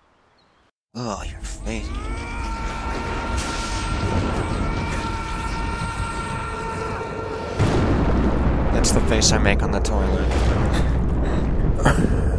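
Electric energy crackles and hums loudly.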